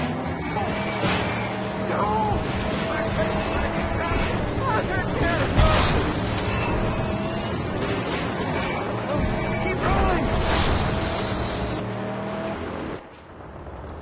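Tyres skid and crunch over rough ground.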